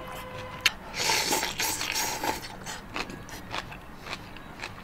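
A man sips soup with a loud slurp.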